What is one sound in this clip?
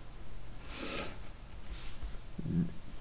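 A pencil scratches across paper in short strokes.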